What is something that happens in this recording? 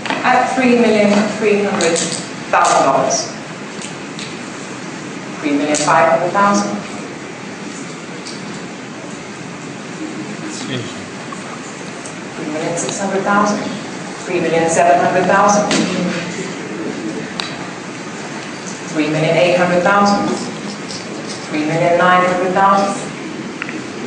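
A man speaks calmly into a microphone in a large room, in short phrases with pauses.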